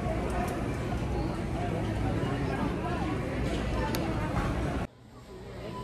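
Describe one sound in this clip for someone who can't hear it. Plastic hangers clack on a rail.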